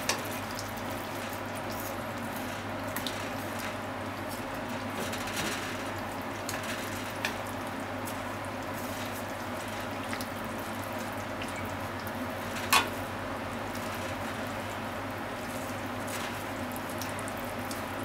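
Potato slices sizzle steadily in hot oil.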